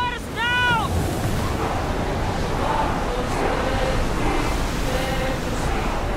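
A group of men chant together nearby.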